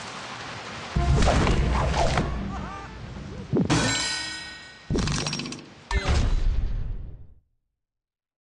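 A bright game jingle plays with short chimes.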